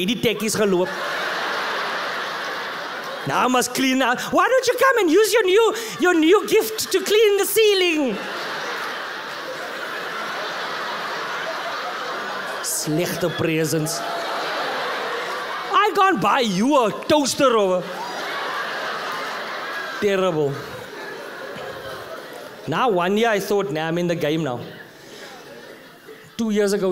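A man speaks with animation into a microphone, heard through loudspeakers in a large hall.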